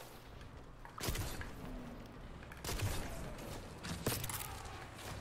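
Gunshots crack sharply a few times.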